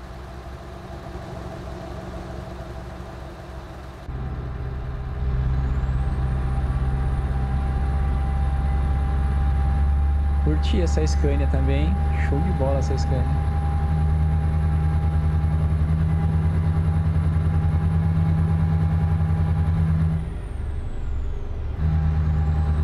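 A truck engine rumbles steadily at a low pitch.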